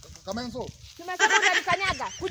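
A woman speaks with animation nearby.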